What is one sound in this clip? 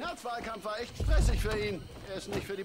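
A car door thuds shut.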